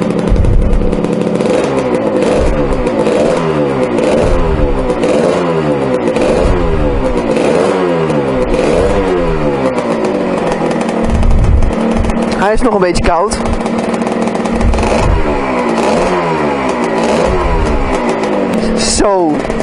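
A small motorcycle engine idles close by, its revs rising and falling again and again.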